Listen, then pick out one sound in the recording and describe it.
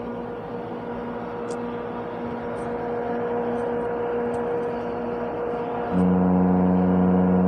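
A ship's engine hums steadily.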